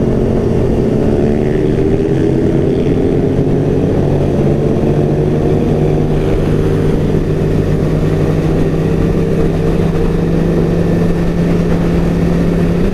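A motorcycle engine hums loudly and steadily up close, its pitch slowly shifting.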